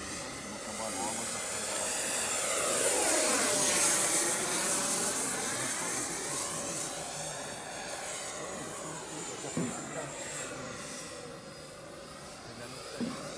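An electric ducted-fan model jet whines overhead, rising and falling in pitch as it passes.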